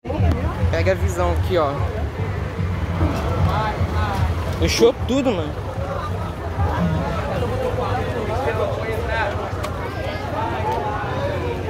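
A crowd of people talk and shout outdoors.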